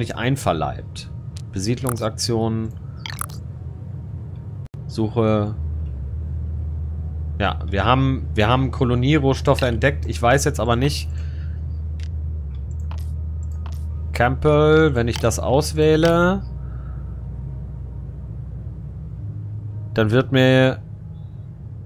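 A man talks with animation, heard close through a microphone.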